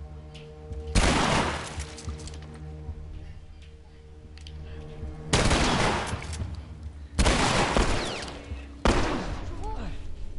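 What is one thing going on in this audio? A gun fires loud, booming shots.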